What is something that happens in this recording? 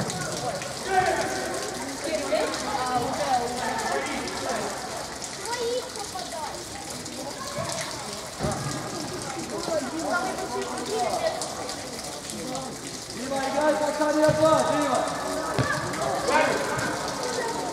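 Young players shout and call to each other in a large echoing hall.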